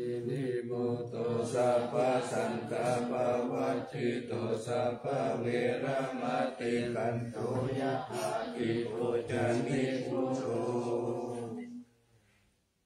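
A group of men chant together in a steady, deep drone in an echoing hall.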